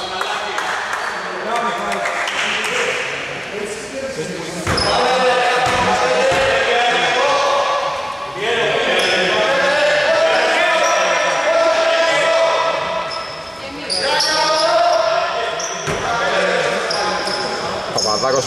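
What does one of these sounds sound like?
Men shout to each other across the hall.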